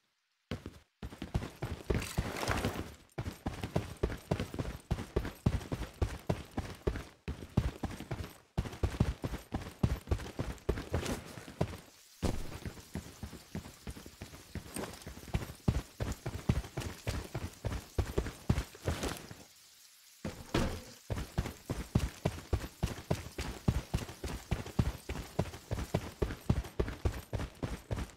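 Footsteps thud quickly and steadily as a soldier runs.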